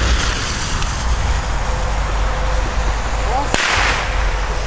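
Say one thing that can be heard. A fuse sizzles and hisses.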